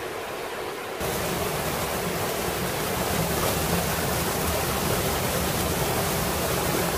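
A small stream of water gushes and splashes close by.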